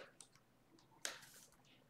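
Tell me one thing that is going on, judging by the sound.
Plastic-wrapped card packs rustle as they are handled.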